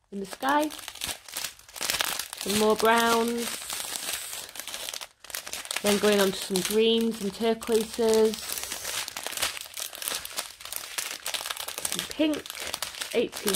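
A plastic bag of tiny beads crinkles and rustles close by.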